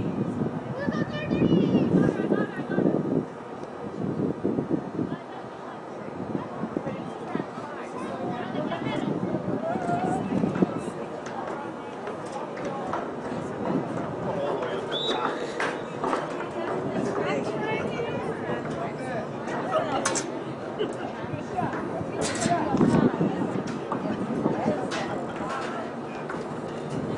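Spectators nearby talk and cheer outdoors.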